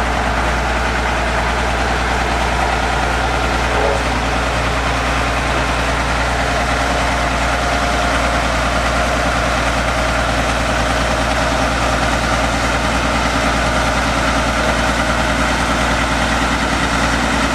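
A steel roller drum crunches over gravel.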